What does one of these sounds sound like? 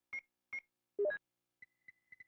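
A quick rising electronic chime sounds.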